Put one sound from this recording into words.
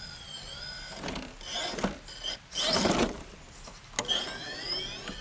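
Rubber tyres grind and scrape against rock.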